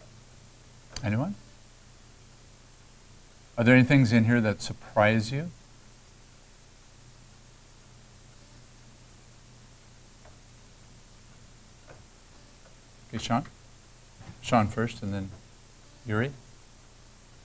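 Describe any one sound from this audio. A man speaks calmly into a microphone, in short bursts with long pauses.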